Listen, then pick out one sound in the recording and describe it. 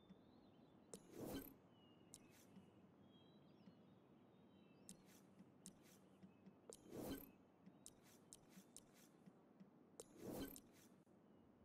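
Game interface sounds whoosh now and then.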